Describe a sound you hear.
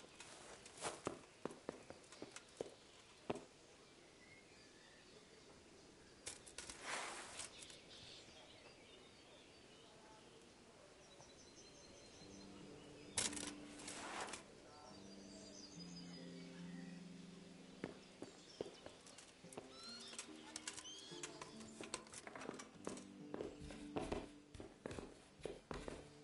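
Footsteps thud on creaking wooden floorboards.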